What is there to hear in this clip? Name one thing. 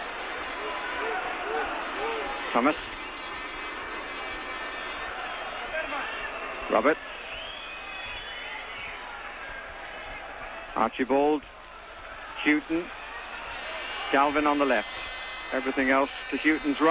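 A large crowd roars and murmurs in a big open stadium.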